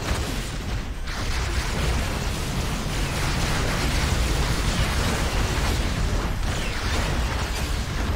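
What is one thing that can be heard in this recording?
Energy blasts zap and crackle.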